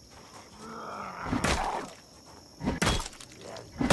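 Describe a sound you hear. Blows land with dull thuds during a scuffle.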